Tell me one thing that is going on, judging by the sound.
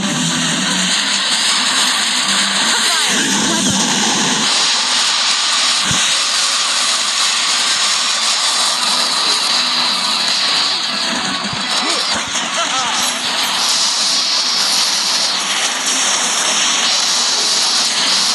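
Video game guns fire rapidly, with blasts and zaps.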